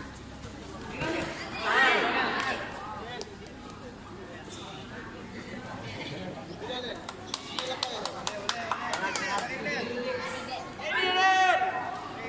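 Young spectators cheer and shout in a large echoing hall.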